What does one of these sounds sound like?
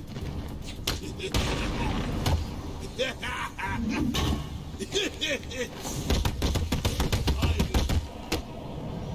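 Punches and kicks thud hard against bodies in a fast brawl.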